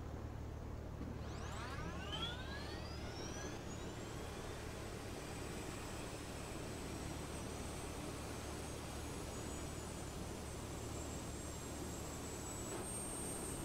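A jet engine spools up with a rising whine, then holds a steady high hum.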